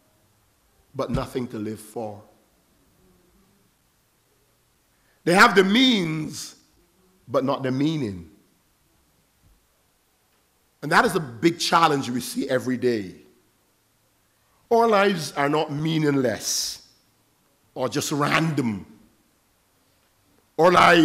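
An elderly man preaches with emphasis through a microphone, in short bursts with pauses, in an echoing hall.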